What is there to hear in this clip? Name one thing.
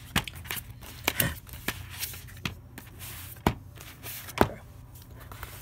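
Plastic clicks and knocks as a disc case is handled.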